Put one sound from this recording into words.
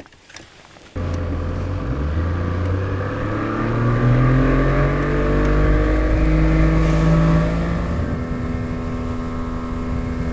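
A boat's outboard motor starts and roars as the boat speeds up.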